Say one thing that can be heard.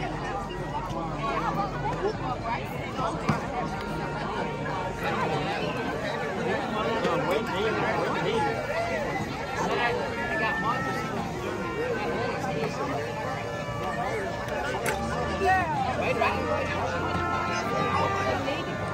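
A large crowd chatters loudly outdoors.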